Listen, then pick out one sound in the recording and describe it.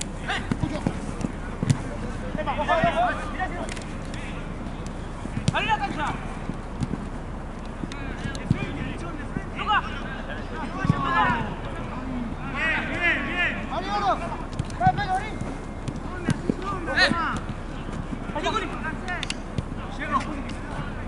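Young men shout to each other across an open field.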